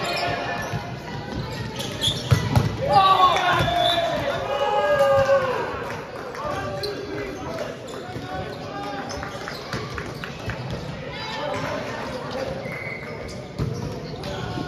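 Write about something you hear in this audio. A volleyball thuds off players' hands and arms.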